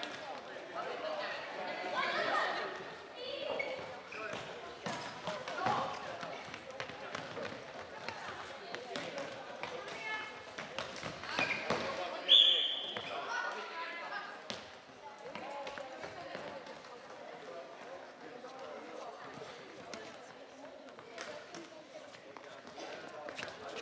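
Floorball sticks clack against a plastic ball.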